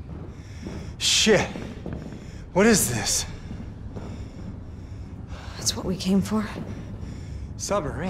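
A young woman speaks with curiosity, close by.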